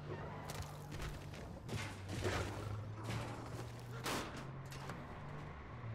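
An explosion bursts nearby with a loud boom.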